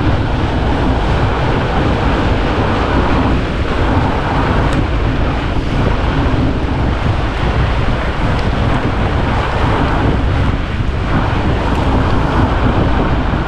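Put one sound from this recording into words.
Wind rushes loudly and steadily over a moving rider.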